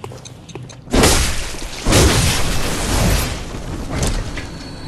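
A blade slashes and strikes with a loud burst of noise.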